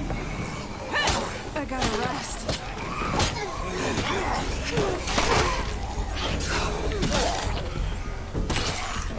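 Heavy blows thud and smack in a close fight.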